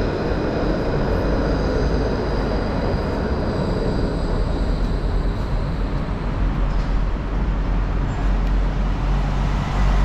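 A tram rolls past with a low rumble.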